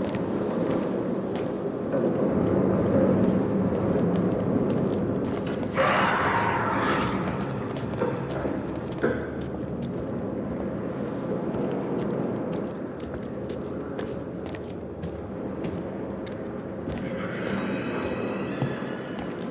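Footsteps crunch over a debris-strewn floor.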